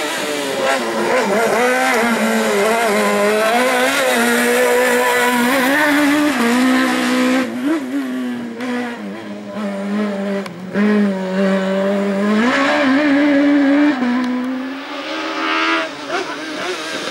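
A rally car engine revs hard, rising and dropping as it shifts gears while racing past.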